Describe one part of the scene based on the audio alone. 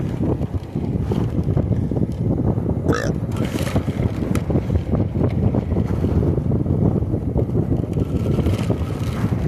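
Tyres rumble on a paved path.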